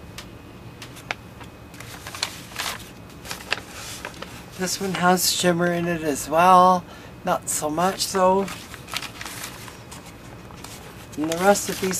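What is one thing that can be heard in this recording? Sheets of paper rustle and crinkle as they are handled.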